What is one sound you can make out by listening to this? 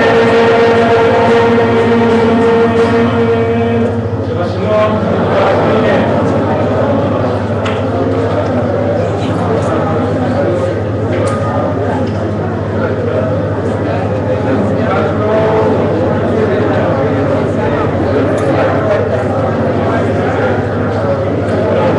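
A crowd sings together in a large echoing room.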